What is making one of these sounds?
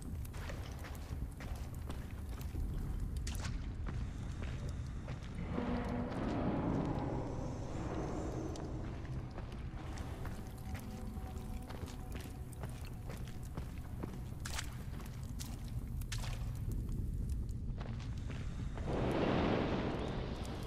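A torch flame crackles and roars close by.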